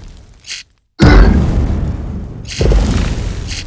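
Water splashes onto lava and hisses.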